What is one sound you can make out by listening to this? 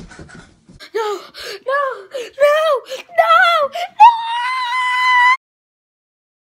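A young boy sings loudly and excitedly close to the microphone.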